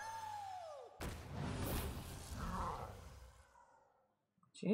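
A deep rumbling impact sounds as a game piece lands.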